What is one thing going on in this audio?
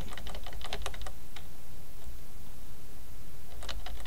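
Wooden crates smash and splinter apart.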